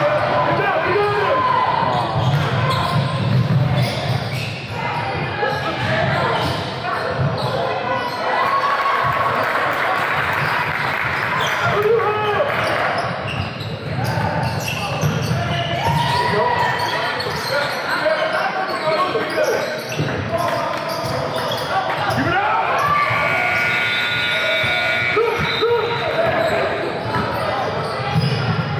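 A basketball bounces on a hardwood court in an echoing gym.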